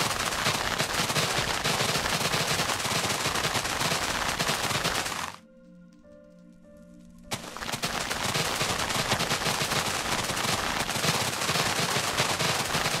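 Fire crackles and hisses loudly.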